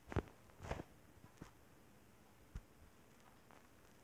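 A blade strikes with dull hits.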